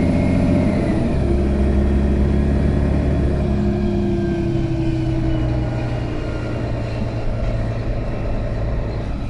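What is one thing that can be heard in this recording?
A bus interior rattles and creaks over the road.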